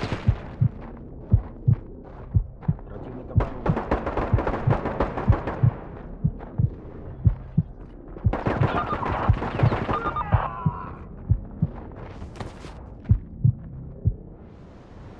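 Gunshots ring out in quick, sharp bursts.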